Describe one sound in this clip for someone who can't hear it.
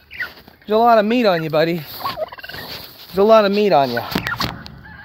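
A turkey gobbles loudly close by.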